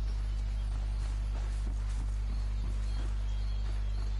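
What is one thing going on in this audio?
Leaves rustle as someone pushes through dense bushes.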